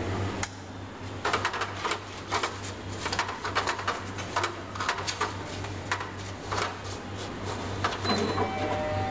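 Paper rustles and clicks as sheets are loaded into a copier feeder.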